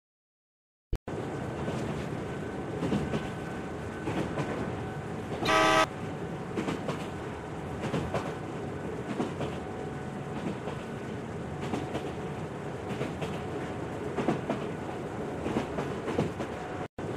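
A train rumbles along the tracks.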